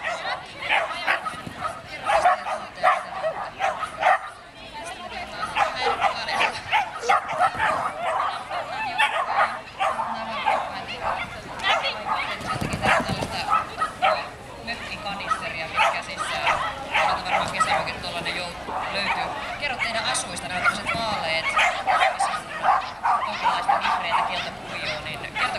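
A crowd of people chatters outdoors at a distance.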